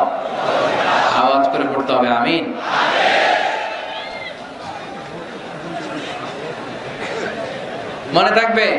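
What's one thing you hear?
A man preaches loudly and passionately into a microphone, heard through loudspeakers outdoors.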